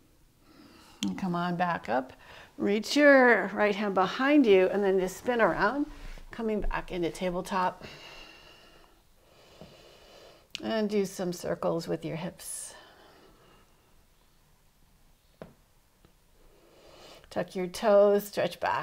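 A young woman speaks calmly and gently, as if giving instructions.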